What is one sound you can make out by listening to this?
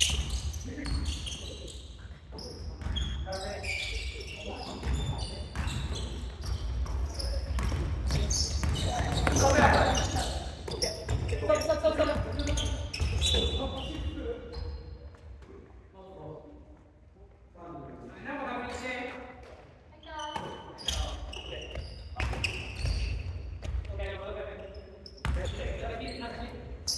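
Young players call out to each other loudly.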